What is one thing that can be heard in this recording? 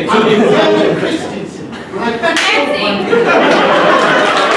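Young men and women talk and shout with animation on a stage.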